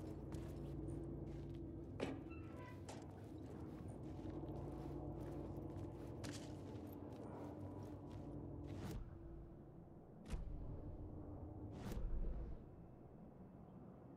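Footsteps tread slowly over a hard, gritty floor.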